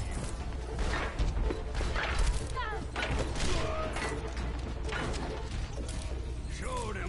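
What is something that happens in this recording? A sci-fi gun fires bursts of shots.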